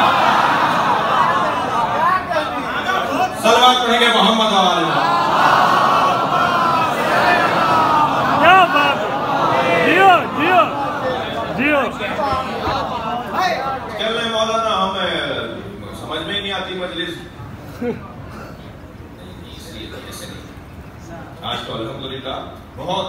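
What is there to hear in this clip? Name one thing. A man speaks passionately into a microphone over a loudspeaker, in an echoing hall.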